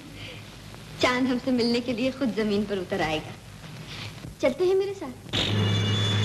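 A young woman answers playfully, heard through an old recording.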